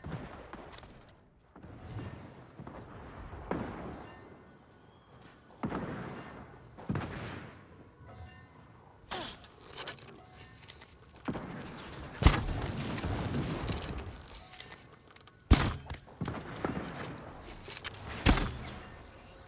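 Bowstrings twang as arrows are loosed.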